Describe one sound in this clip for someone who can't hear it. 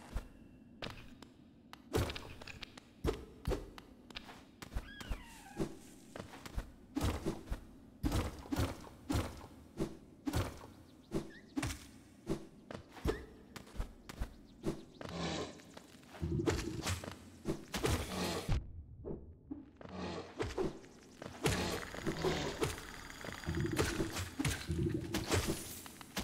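Sharp slashing swipes and thuds of a game character's attacks come again and again.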